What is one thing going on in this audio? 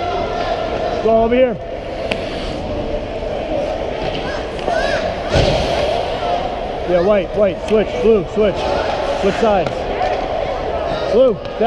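Young children shout and call out in a large echoing rink.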